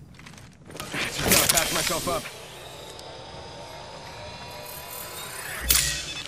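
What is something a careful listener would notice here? A syringe is used with a hiss and mechanical clicks.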